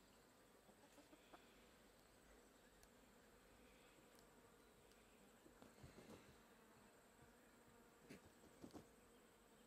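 Chickens cluck softly outdoors.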